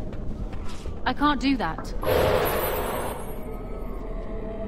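Heavy blows and bursts of magic crash during a fight.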